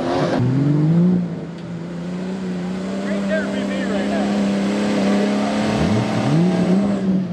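A second truck engine revs loudly nearby.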